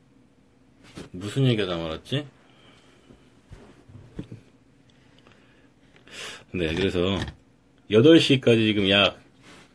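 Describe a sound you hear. A young man speaks close to the microphone in short bursts.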